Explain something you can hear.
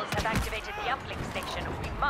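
A blow thuds as a soldier strikes an enemy.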